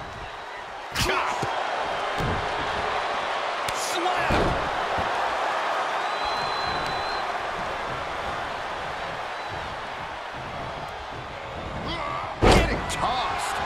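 Heavy thuds of bodies hitting a wrestling ring mat sound out.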